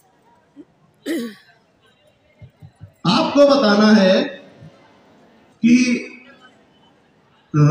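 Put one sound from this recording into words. A man speaks loudly close by in short bursts.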